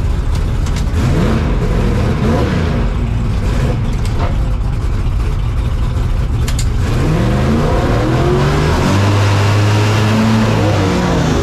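A race car engine revs up and down in quick bursts.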